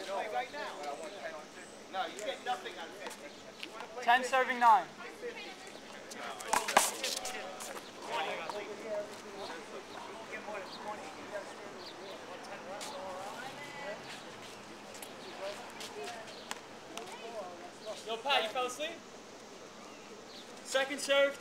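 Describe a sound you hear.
Young men talk and call out nearby outdoors.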